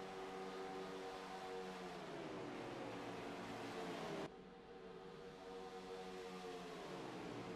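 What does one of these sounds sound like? A race car engine's pitch drops as it passes by.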